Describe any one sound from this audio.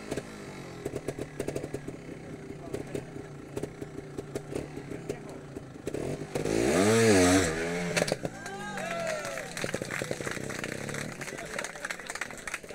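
A motorcycle engine putters and pops at low revs.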